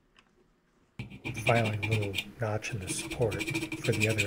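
A small file scrapes against metal.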